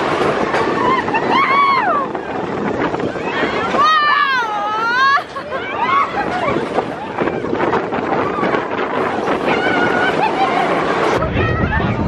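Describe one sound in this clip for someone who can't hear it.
Riders scream and cheer close by.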